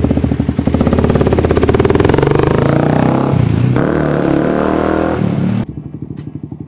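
A motorcycle accelerates away, its engine note rising.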